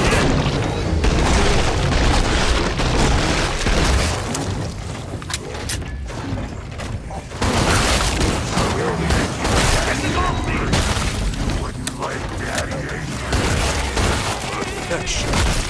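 Monsters growl and shriek.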